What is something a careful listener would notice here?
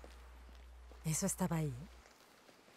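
A woman speaks in a tense, low voice, close by.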